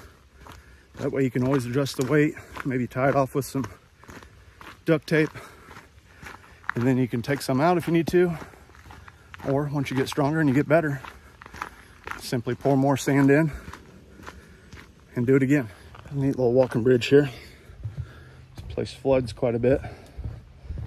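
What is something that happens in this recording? A middle-aged man talks calmly, close to the microphone.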